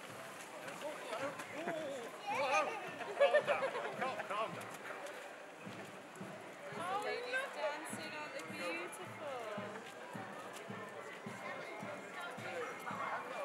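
Drums beat a steady rhythm outdoors.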